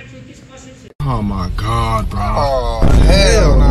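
A young man speaks loudly and close by.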